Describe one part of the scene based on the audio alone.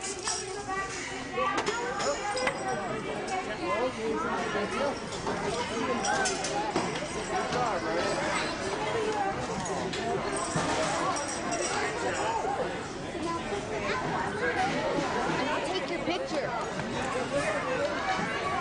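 Many young children chatter and shout excitedly.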